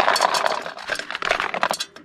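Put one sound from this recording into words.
A paper bag rustles as food is poured into a pot.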